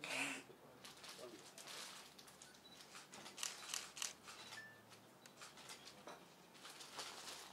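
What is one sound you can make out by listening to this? A flower bouquet's plastic wrapping rustles as it is handed over.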